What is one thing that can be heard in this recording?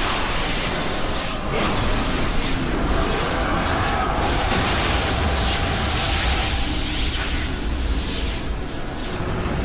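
A burst of magical energy roars and crackles.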